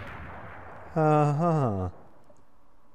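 A game chimes as a bright flash fills the scene.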